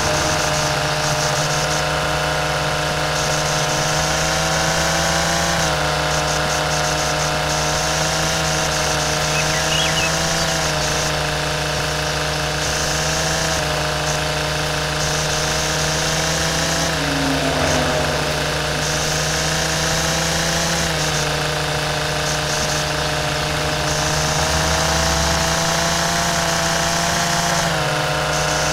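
A string trimmer engine whines steadily, rising and falling in pitch.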